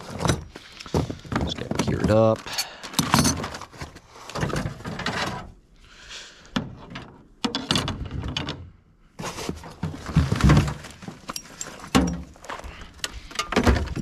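Tools rattle and clink as they are moved about.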